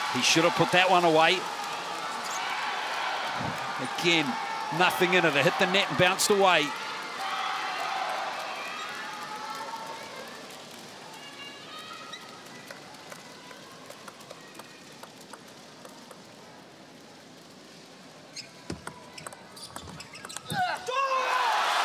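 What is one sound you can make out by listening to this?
A table tennis ball clicks sharply back and forth on paddles and the table.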